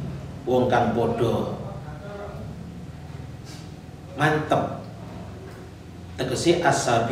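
An elderly man reads aloud calmly into a close microphone, in short bursts.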